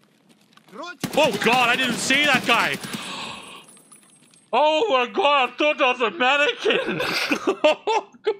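A man shouts excitedly into a close microphone.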